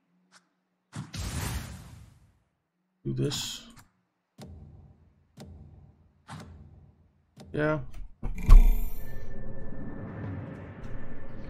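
Short game sound effects whoosh and chime.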